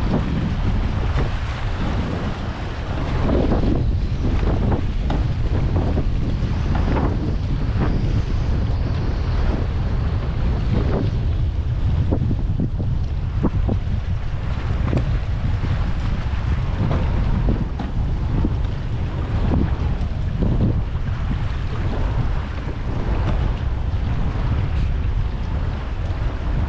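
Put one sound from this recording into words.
Small waves slap against the side of a kayak.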